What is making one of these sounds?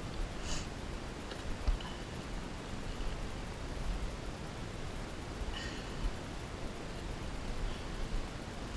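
A light ladder knocks and rattles as someone climbs it.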